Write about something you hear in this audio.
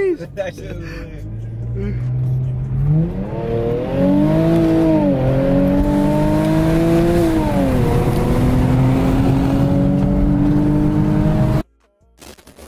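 A car engine revs loudly, rising and falling as it speeds up.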